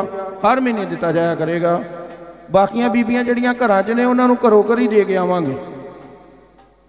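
A man sings loudly into a microphone through loudspeakers, then stops.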